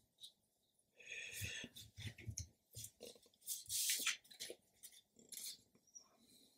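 A sheet of paper rustles as it slides across a table.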